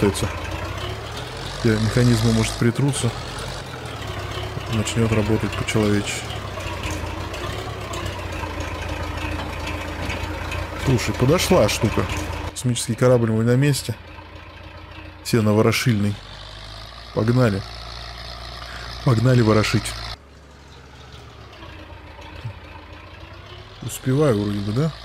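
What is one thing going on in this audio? A tractor engine rumbles steadily at idle.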